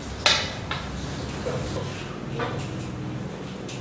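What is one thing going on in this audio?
A metal tray is set down on a wooden surface with a clatter.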